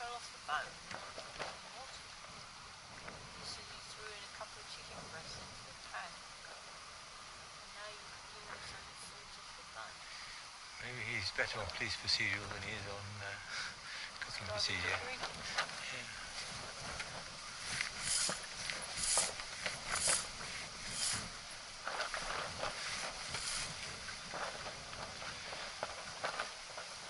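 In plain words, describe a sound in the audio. Wind blows steadily outdoors, gusting at times.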